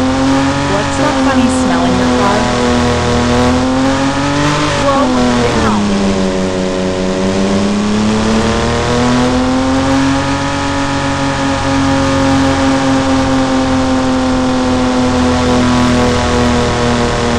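A game's simulated car engine hums, its pitch dipping and rising as the car slows and speeds up.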